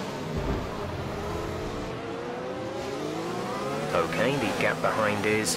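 A Formula One car engine revs up as the car accelerates.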